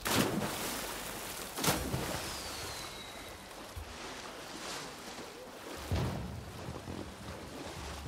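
Water splashes in bursts as a swimmer strokes through it.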